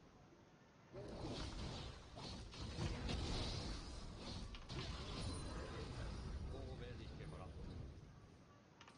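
Magic blasts and sword strikes crackle and thud in a fight.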